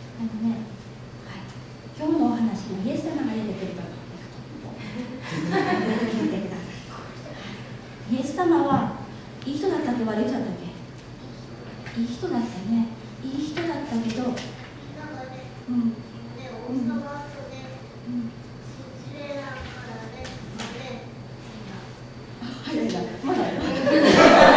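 A woman speaks calmly into a microphone, heard through a loudspeaker in a hall.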